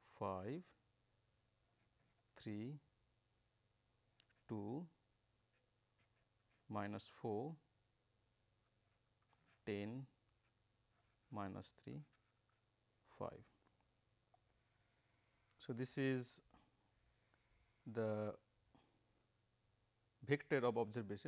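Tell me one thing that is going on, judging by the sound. A pen scratches on paper as it writes.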